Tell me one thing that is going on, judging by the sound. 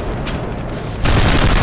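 A gun fires.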